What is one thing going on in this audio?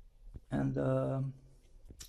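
A sponge rubs against a metal surface.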